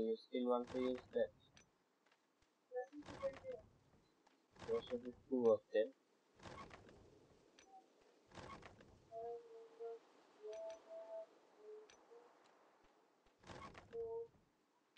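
A game's interface gives off short chimes and thumps as a chest opens and items are moved.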